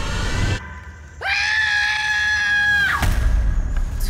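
A young person screams loudly.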